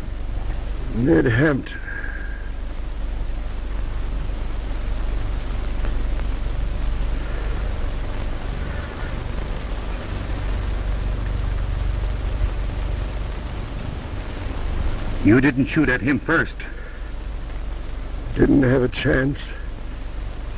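A man speaks in short, tense bursts close by.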